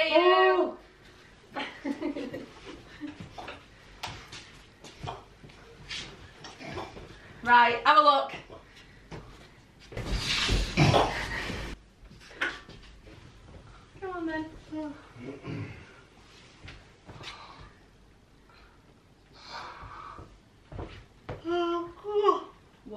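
A young woman shrieks and laughs excitedly close by.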